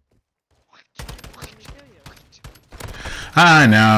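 Rapid gunfire rattles from a video game.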